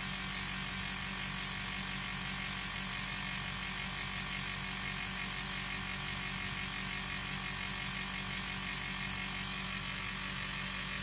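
A machine hums and whirs steadily close by.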